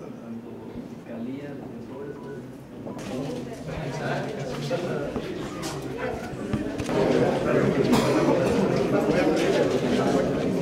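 A crowd of people chatters all at once.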